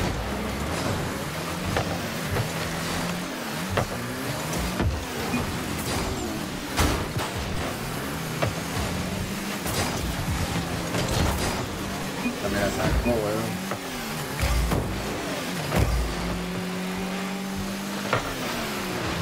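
Game car engines hum and boost with whooshing bursts.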